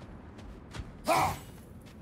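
An axe whooshes through the air and thuds into wood.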